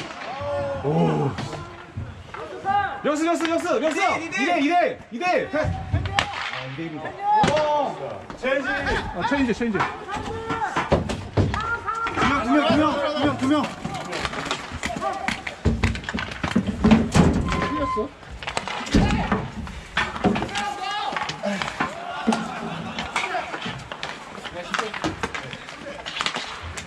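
Young men shout and call out nearby, outdoors.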